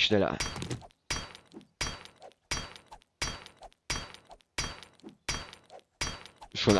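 A stone axe strikes hard ground in steady, repeated blows.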